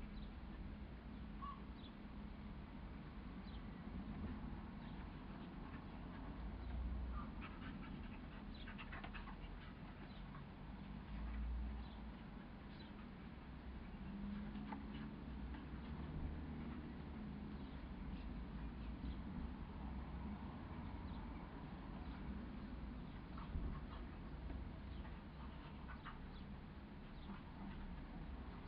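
Two dogs scuffle and tumble on grass.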